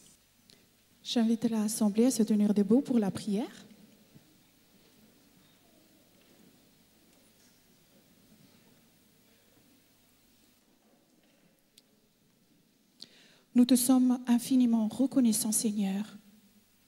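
A woman speaks calmly into a microphone, heard through loudspeakers.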